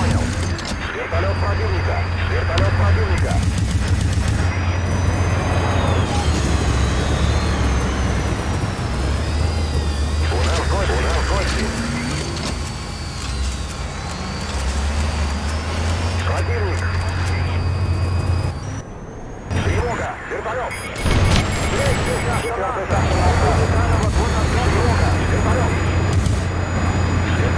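A helicopter's engine drones loudly.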